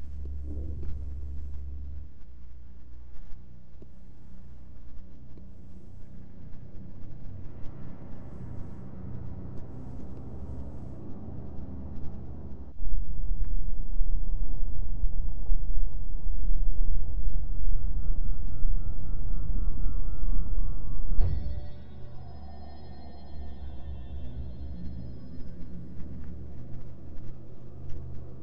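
Soft footsteps patter on stone stairs.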